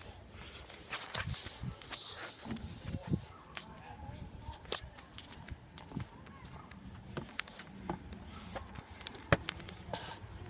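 Footsteps walk across the ground outdoors.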